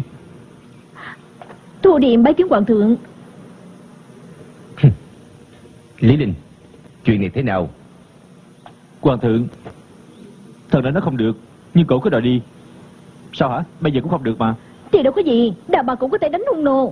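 A young woman speaks sweetly.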